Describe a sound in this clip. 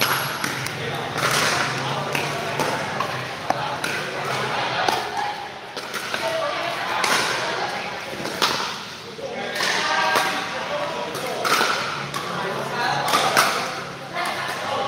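Paddles smack a plastic ball back and forth with sharp pops.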